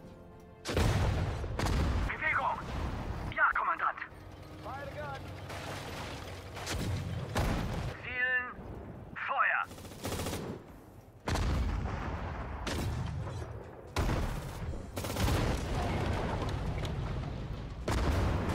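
Explosions boom and crack repeatedly.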